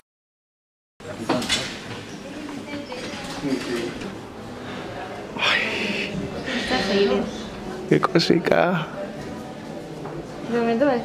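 A young woman talks softly close by.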